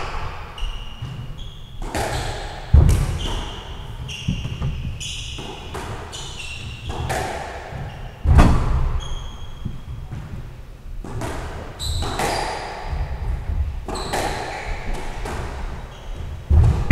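A squash ball smacks sharply off rackets and walls in an echoing room.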